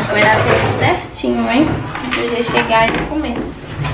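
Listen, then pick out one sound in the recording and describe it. A plastic cutting board is set down with a knock.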